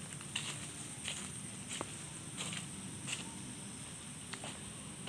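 Footsteps crunch on dry fallen leaves.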